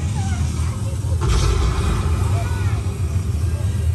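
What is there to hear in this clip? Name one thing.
A burst of flame roars and whooshes nearby.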